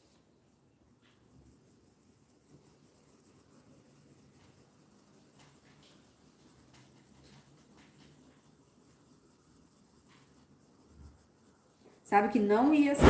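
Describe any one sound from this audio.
A wooden stick rubs and scrapes softly over paper.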